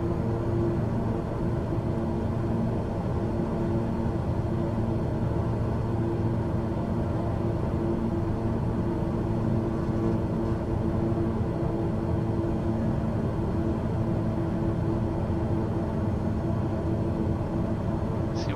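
Aircraft engines drone steadily with a low hum.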